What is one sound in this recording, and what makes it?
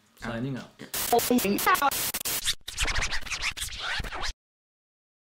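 Loud static hisses and crackles.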